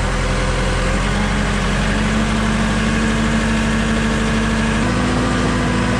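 A diesel engine's pitch steps up as its throttle is opened.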